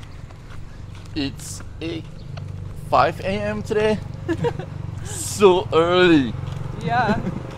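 A woman laughs close by outdoors.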